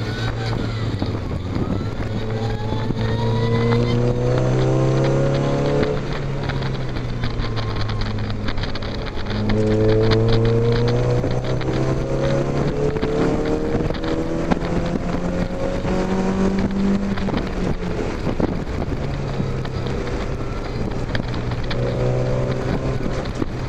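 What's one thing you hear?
A car engine roars close by, revving up and down through the gears.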